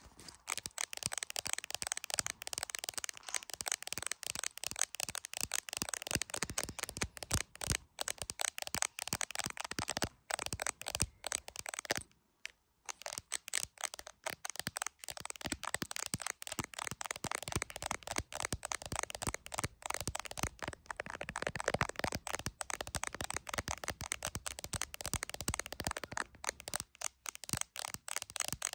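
Long fingernails tap and click rapidly on a plastic phone case, very close.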